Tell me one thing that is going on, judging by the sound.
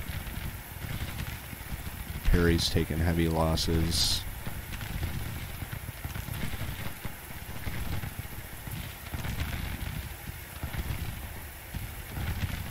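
Distant gunfire rumbles and crackles steadily.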